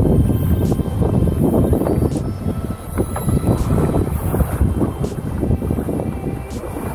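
A fishing reel's handle clicks and whirs as a line is wound in.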